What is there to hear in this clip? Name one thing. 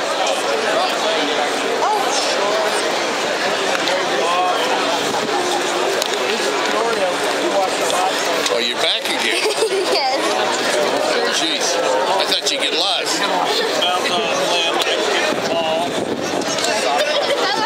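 A crowd murmurs and chatters steadily in a large open stadium.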